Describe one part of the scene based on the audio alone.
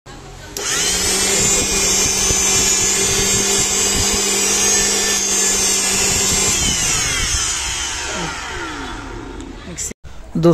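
A small electric motor whirs at high speed, then winds down and stops.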